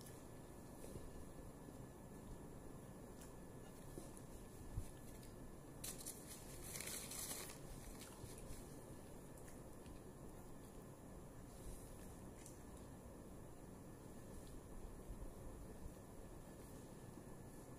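Fingers scrape food on a plate.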